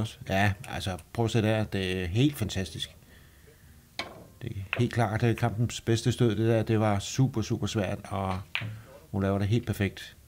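Billiard balls click against each other on a table.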